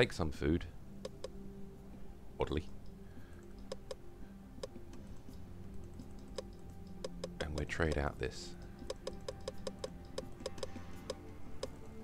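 Soft interface clicks sound quickly one after another.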